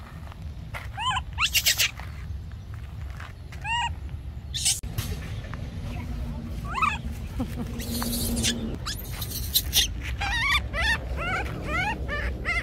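A small animal squeaks in high, rising cries, again and again.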